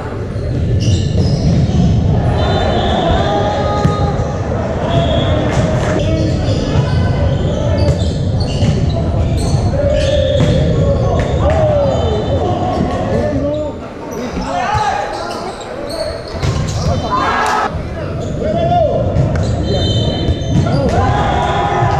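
A volleyball thumps as it is served and hit.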